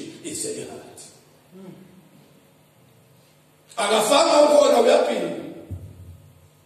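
A man preaches loudly through a microphone in a large echoing hall.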